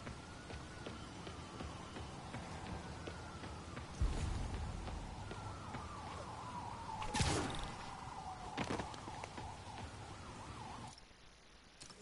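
Quick footsteps run across a hard surface.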